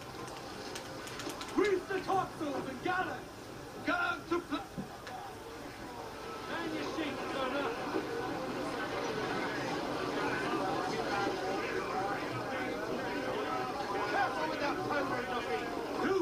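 Cannons fire in loud booming blasts.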